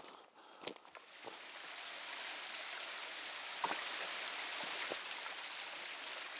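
A small waterfall splashes steadily over rocks.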